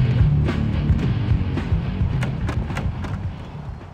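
A heavy door swings open with a creak.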